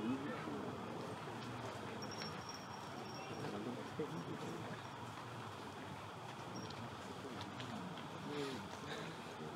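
Bare feet shuffle softly on a mat.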